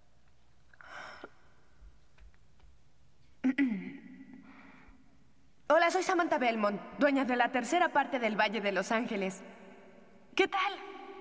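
A young woman speaks into a microphone, heard through a loudspeaker.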